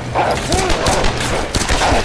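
A dog snarls and barks.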